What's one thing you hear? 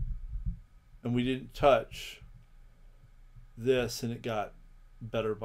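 A man talks calmly through a close microphone.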